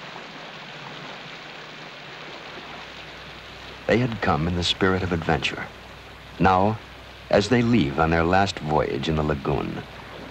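People wade through shallow water.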